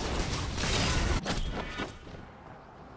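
Fighting effects in a video game crash and burst loudly.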